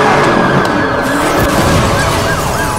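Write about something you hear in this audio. Metal crunches as a police car is rammed.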